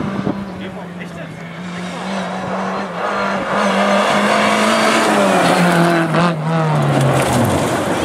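A rally car engine roars loudly as it speeds closer.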